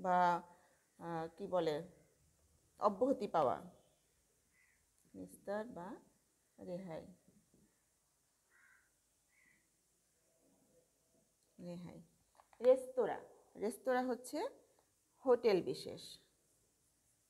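A woman speaks calmly in pauses, close by.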